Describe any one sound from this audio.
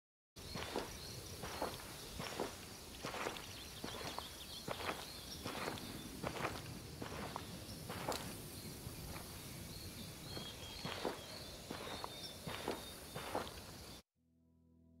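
Footsteps crunch and rustle through dry grass at a steady walking pace.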